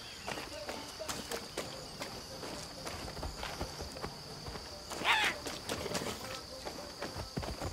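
Footsteps crunch steadily on sand and gravel.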